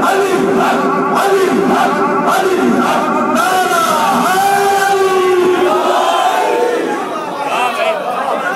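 A crowd of men chants loudly together.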